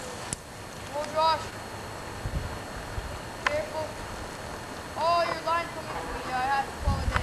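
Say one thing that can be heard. A young child calls out nearby, outdoors.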